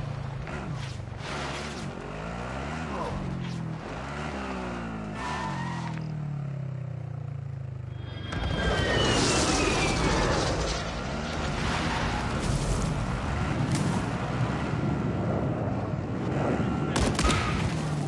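A quad bike engine drones and revs.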